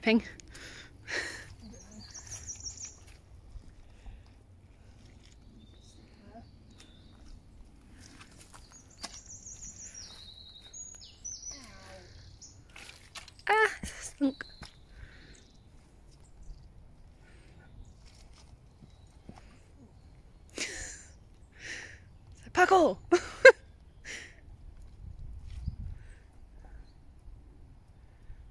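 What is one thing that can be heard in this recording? Boots squelch and slosh through thick mud.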